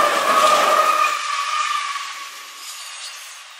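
A train's wheels squeal steadily on the rails.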